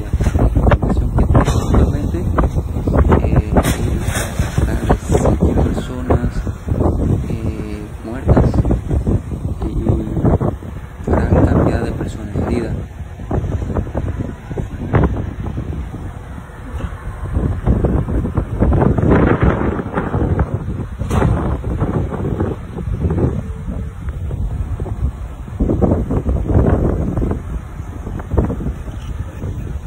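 A car's engine and tyres rumble steadily from inside.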